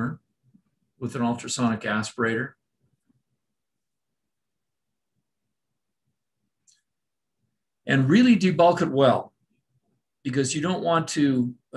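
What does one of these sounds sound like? An older man speaks calmly over an online call, in short phrases with pauses.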